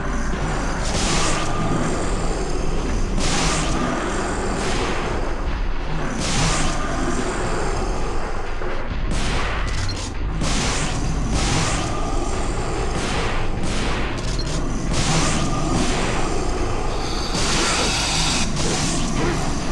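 A sword slashes and strikes repeatedly.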